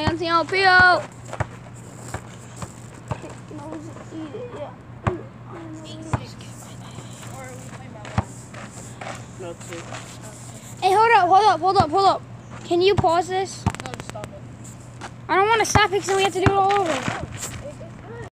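A young boy shouts loudly nearby.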